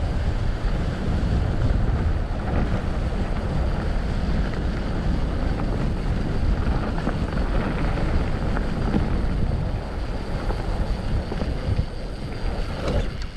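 Bicycle tyres roll and rattle over a bumpy grass track.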